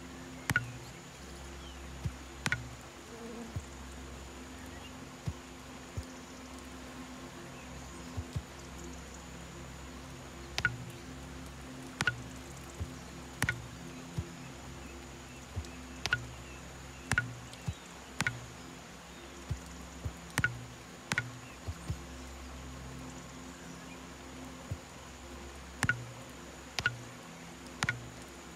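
Short, sharp menu clicks sound now and then.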